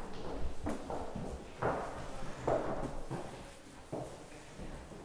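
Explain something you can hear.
Footsteps thump on wooden steps.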